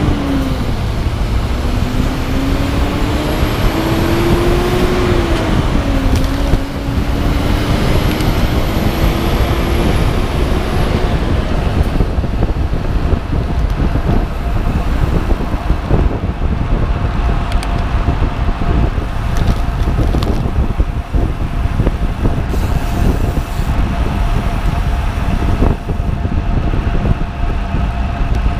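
Strong wind rushes and buffets steadily, as if outdoors while moving fast.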